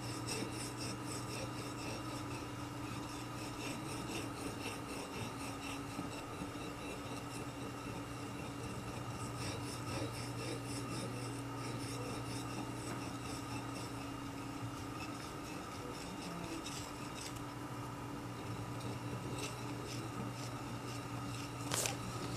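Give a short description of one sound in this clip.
An ink stick grinds on a wet inkstone with a soft, steady scraping.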